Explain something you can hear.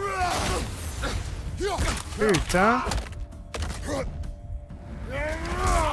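An axe strikes a creature with heavy thuds.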